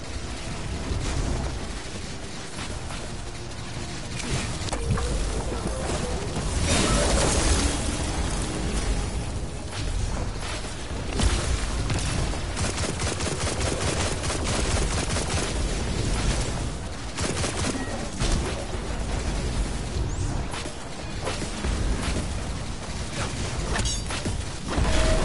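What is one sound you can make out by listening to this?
Guns fire in quick bursts of sharp shots.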